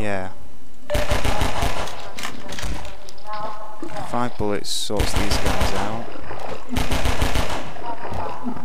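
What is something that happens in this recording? A pistol fires rapid shots in quick bursts.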